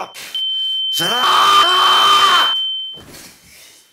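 A young man screams loudly nearby.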